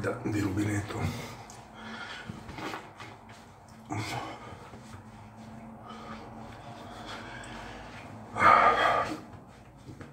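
A man rubs his face dry with a cloth towel.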